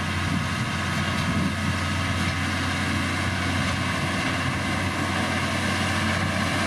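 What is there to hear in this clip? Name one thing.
A heavy diesel engine rumbles steadily close by.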